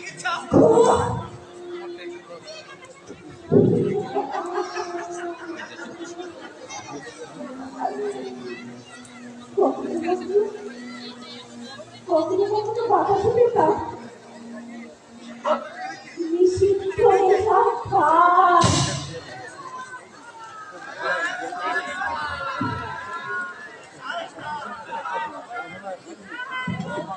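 A man speaks loudly and with emotion, heard from a distance in an open space.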